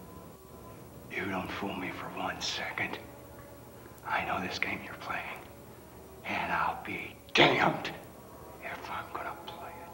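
A middle-aged man speaks slowly and sternly, close by.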